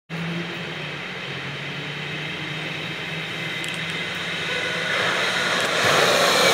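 A light rail train rolls toward the listener, its hum and rumble growing steadily louder.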